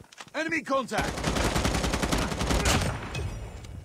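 Rapid automatic gunfire rattles.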